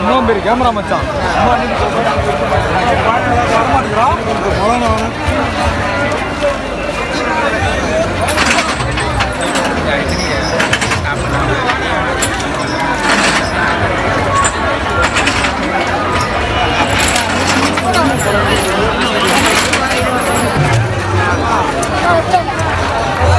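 A large crowd chatters loudly all around outdoors.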